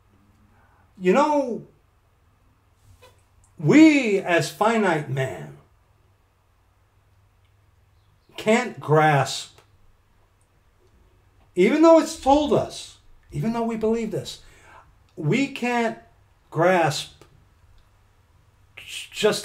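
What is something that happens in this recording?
A middle-aged man speaks with animation into a nearby microphone, in short bursts with pauses.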